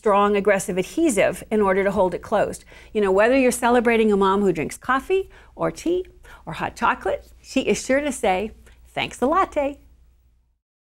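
A woman speaks with animation into a close microphone.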